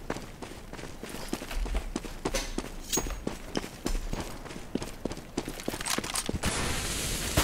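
Footsteps tread quickly on hard ground.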